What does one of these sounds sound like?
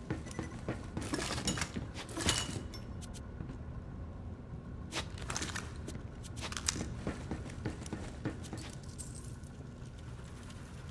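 Short clinks and chimes ring out as items are picked up.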